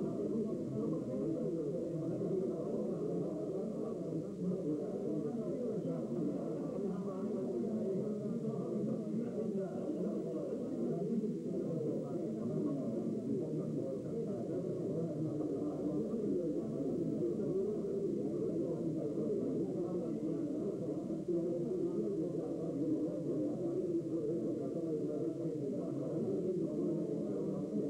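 Many men chatter at once in a crowded room.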